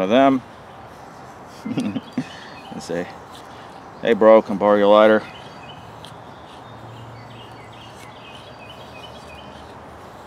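A knife shaves thin curls from a stick of wood.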